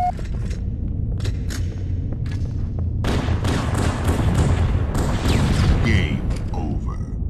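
Video game guns fire in rapid bursts with loud blasts.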